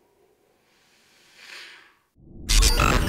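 A man exhales a long puff of vapour with a soft hiss.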